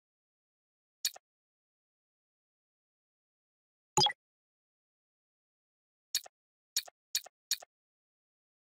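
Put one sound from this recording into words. Short electronic clicks sound as menu choices change.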